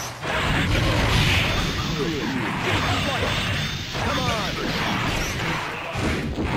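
Punches and energy blasts crash in a fast video game fight.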